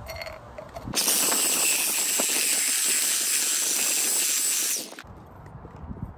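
A power cutting tool whines loudly through metal.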